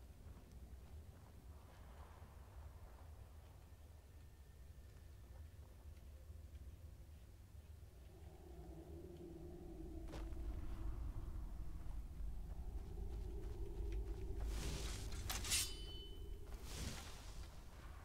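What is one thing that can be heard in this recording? Footsteps crunch slowly over rocky ground.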